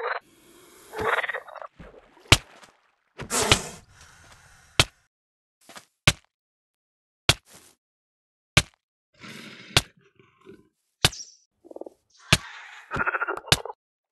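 Sharp hits land on a creature again and again at an even pace.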